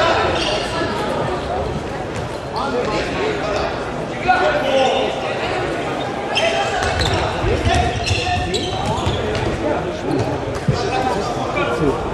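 A ball thumps on a hard floor.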